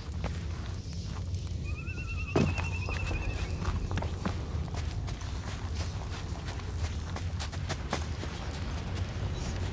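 Footsteps crunch on gravelly ground.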